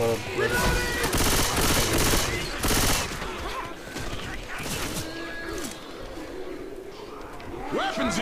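Zombies growl and shriek.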